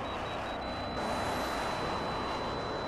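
A missile launches with a loud whoosh.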